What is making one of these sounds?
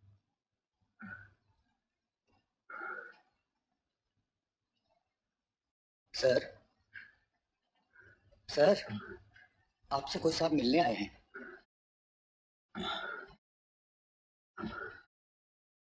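A man speaks slowly and gravely, in short phrases with pauses.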